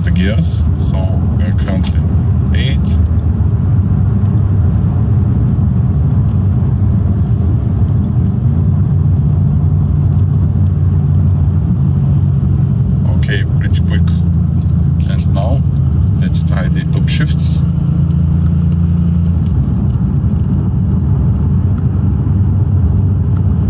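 A car engine drones steadily from inside the cabin, its pitch shifting as the gears change.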